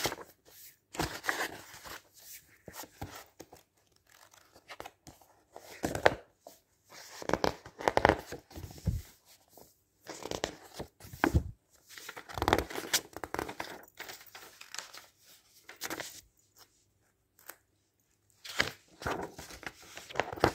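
Pages slap softly onto a pile of paper.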